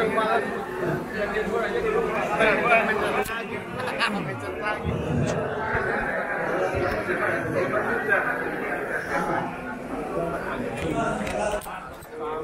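Many men and women chatter at once in a busy room.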